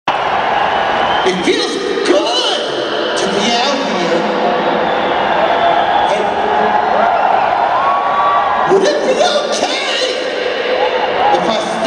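A large crowd cheers and shouts in a big echoing arena.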